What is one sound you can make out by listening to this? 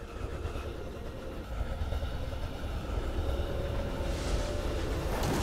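Fantasy game combat sounds whoosh and crackle with magic effects.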